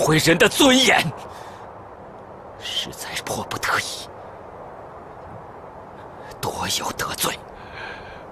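A man speaks in a low, tense voice close by, in short bursts.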